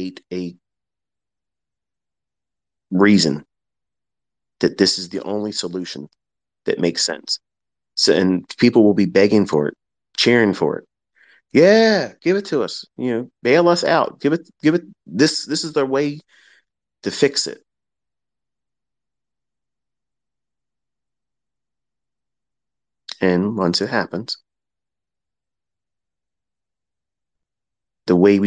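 A man speaks calmly and clearly into a microphone, with long pauses.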